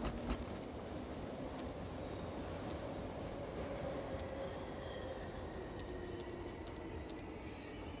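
Soft interface clicks tick as menu tabs change.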